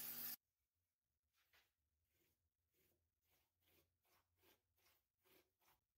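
A brush swishes in quick, repeated strokes over wood.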